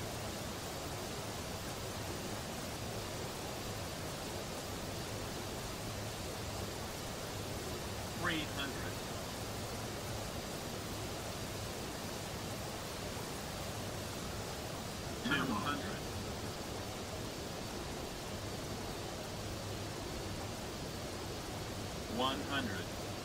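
The engines of a twin-engine jet airliner drone in flight.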